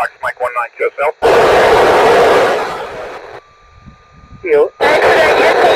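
A man speaks briskly into a handheld radio close by.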